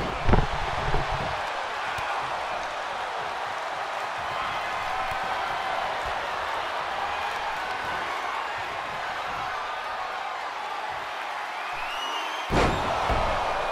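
Heavy thuds ring out as bodies slam onto a wrestling mat.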